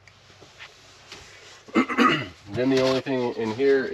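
Cardboard rustles as a box is rummaged through.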